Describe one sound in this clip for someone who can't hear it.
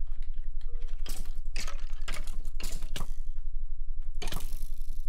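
A sword strikes a rattling skeleton with sharp clattering hits.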